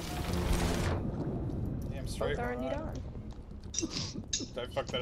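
Water churns, heard muffled from underwater.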